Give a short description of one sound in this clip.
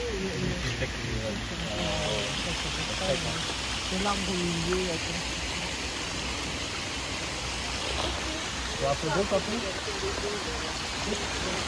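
A fountain sprays and splashes steadily into a pond.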